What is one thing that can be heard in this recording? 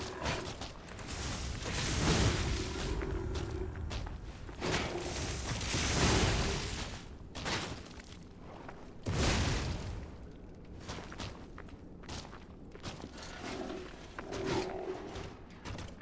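Metal weapons clash and thud in a game fight.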